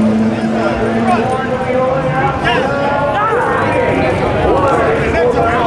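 An announcer's voice booms through outdoor loudspeakers.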